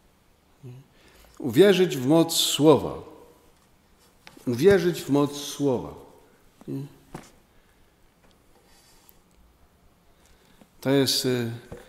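A middle-aged man chants slowly into a microphone, with pauses between phrases.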